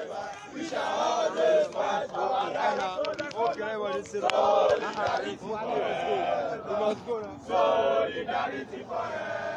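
A crowd of people chants loudly outdoors.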